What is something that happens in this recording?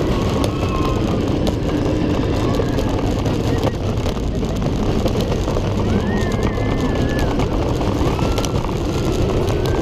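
Wind rushes loudly past, as if outdoors at speed.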